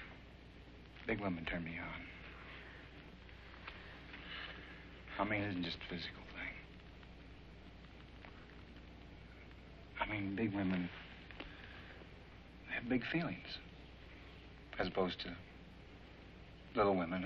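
A middle-aged man speaks quietly and earnestly, close by, with pauses.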